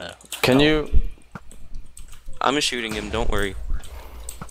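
A bow twangs as it shoots an arrow.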